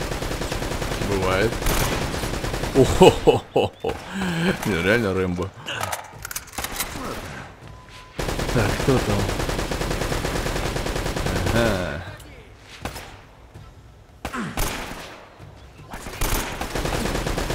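Rifle shots crack sharply now and then.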